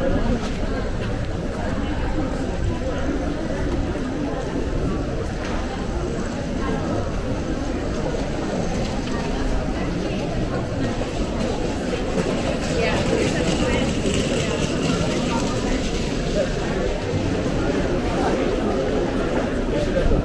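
A crowd of people chatters throughout, outdoors.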